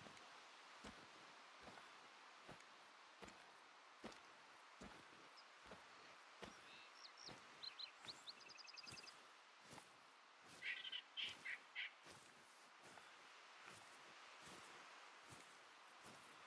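Footsteps brush through tall grass.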